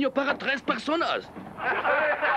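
A man talks quietly close by.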